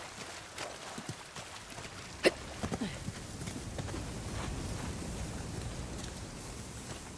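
A stream of water flows and splashes steadily.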